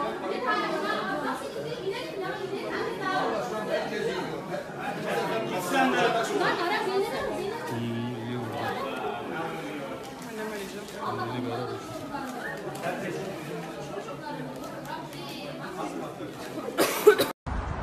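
A crowd of adults murmurs and talks in an echoing indoor hall.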